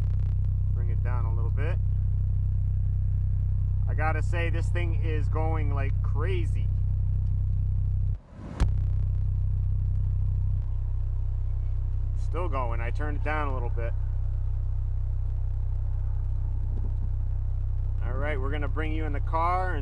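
A subwoofer booms with loud, deep, steady bass.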